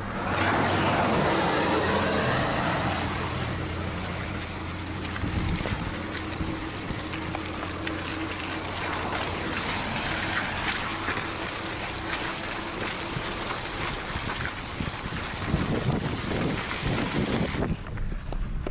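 A car drives slowly over wet, rough ground with a steady rumble.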